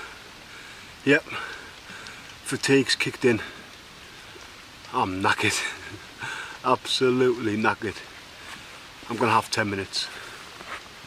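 A man speaks close up, calmly and with pauses.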